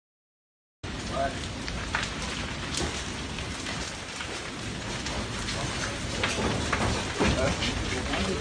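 A large fire crackles and roars nearby.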